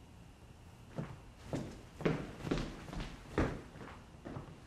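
Footsteps walk away.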